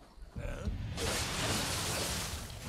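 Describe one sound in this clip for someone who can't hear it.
Flames burst and roar close by.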